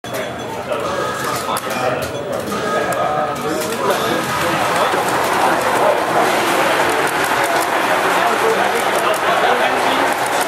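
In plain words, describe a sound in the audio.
Upbeat electronic game music plays through a loudspeaker.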